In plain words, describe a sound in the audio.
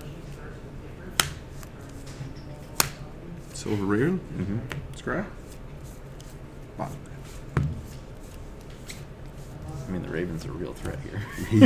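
Playing cards tap and slide on a soft table mat.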